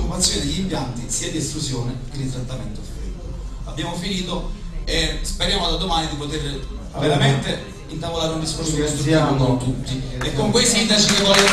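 A man speaks into a microphone, heard over loudspeakers in a room.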